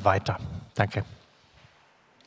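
A middle-aged man speaks calmly into a microphone in a large echoing hall.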